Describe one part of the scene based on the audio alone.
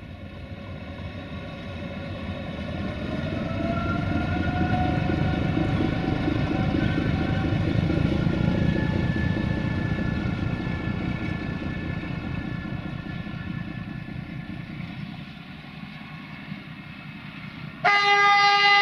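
A diesel locomotive engine rumbles loudly as it passes, then fades into the distance.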